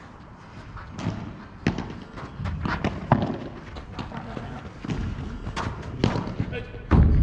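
Padel rackets strike a ball with sharp pops, back and forth.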